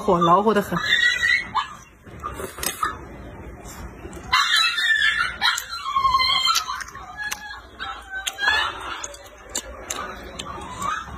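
A young woman slurps and chews noodles noisily.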